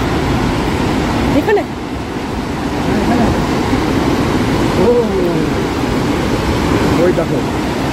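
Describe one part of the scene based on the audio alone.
Water rushes and roars steadily nearby.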